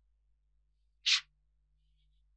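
A book slides out from a shelf.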